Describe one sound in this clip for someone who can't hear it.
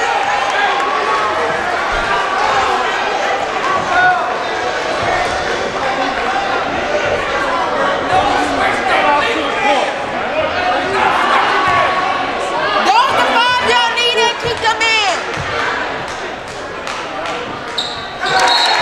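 A crowd chatters and calls out in a large echoing gym.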